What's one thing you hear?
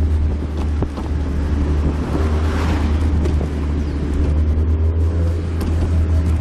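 Wind rushes past an open car.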